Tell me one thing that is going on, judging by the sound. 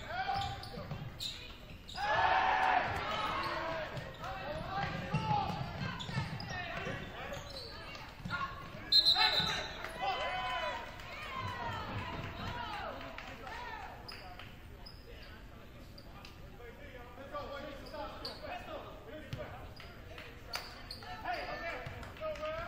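Spectators in an echoing gym shout and cheer.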